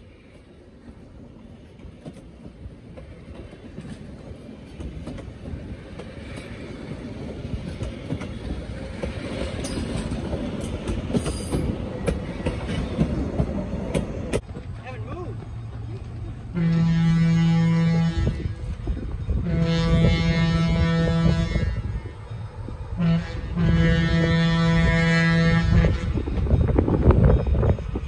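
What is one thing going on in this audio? Passenger train cars rumble past on the rails, wheels clacking.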